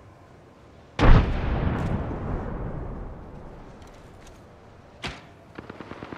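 A rifle fires a loud, booming shot that echoes away.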